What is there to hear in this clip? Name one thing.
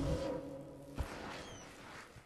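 A fox plunges headfirst into deep snow with a soft thump.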